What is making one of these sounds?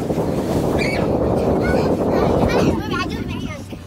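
Water splashes as a child kicks and paddles in shallow water.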